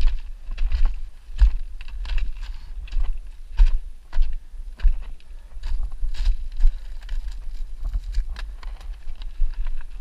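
Bicycle tyres crunch and rattle over gravel.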